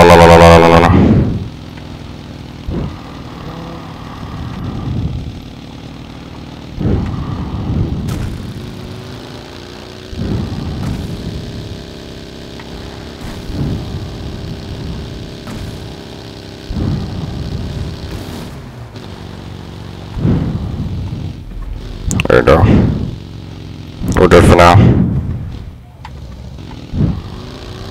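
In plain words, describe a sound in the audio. A game buggy's engine revs as it drives over grass and rough ground.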